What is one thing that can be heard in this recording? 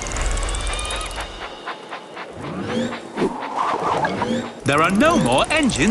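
A toy train engine rolls along a track.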